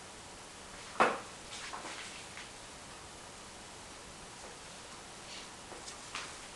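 A pen scratches and taps softly on paper close by.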